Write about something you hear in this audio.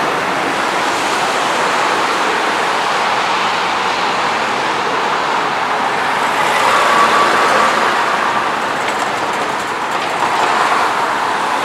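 Heavy traffic roars past steadily on a highway close by.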